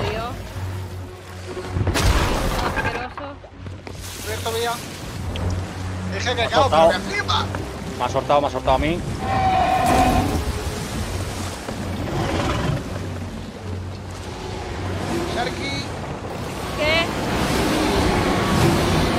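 Waves wash against a wooden ship at sea.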